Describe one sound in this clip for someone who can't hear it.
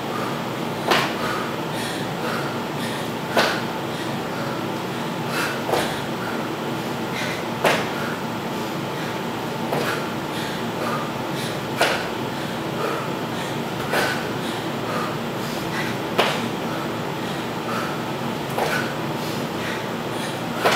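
Sneakers thump on a hard floor again and again.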